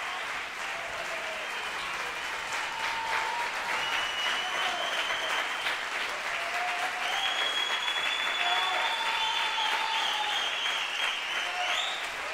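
An audience applauds loudly in an echoing hall.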